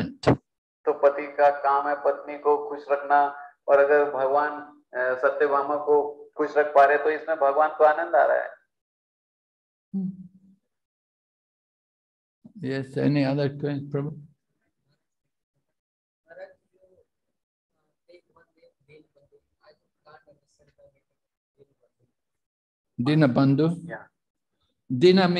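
An elderly man speaks with animation into a microphone, pausing often.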